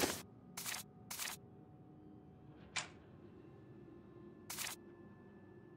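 Short, sharp menu clicks sound several times.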